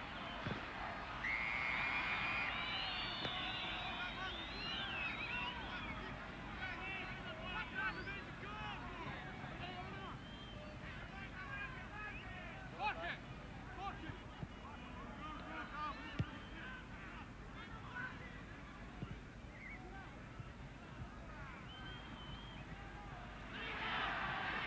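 A large stadium crowd murmurs and whistles in the distance.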